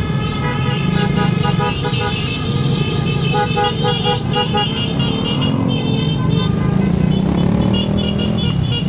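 Motorcycle engines rumble and putter close by.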